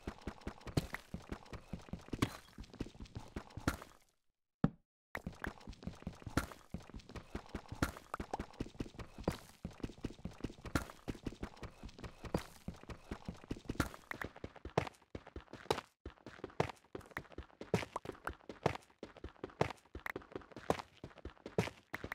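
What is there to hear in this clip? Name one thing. A pickaxe chips rapidly at stone with quick, repeated knocks.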